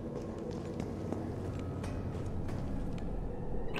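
Footsteps tread on a metal floor.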